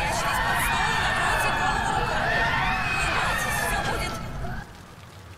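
Eerie ghostly wails rise and fall.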